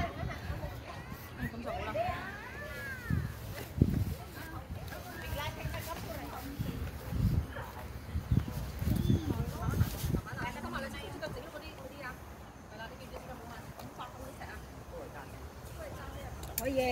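Men talk and call out outdoors at a distance.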